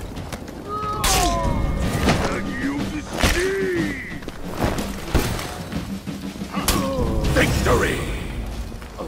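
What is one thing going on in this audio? Heavy blades clash and ring with metallic strikes.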